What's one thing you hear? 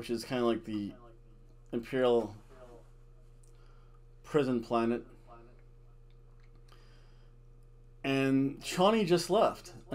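A middle-aged man speaks calmly in short bursts, close to a microphone.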